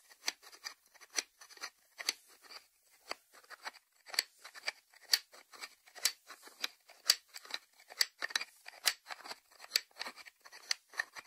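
Fingernails tap on a ceramic lid.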